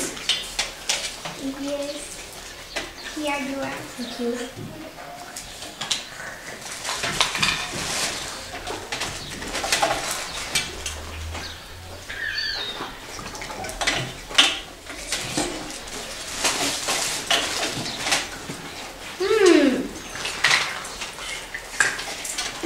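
Plastic toy food clicks and clatters on plastic plates.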